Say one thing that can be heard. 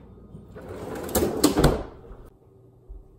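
A freezer drawer thumps shut.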